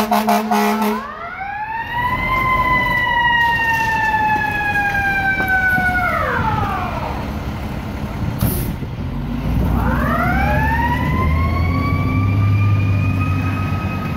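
A fire engine's siren wails, rising and falling, close by.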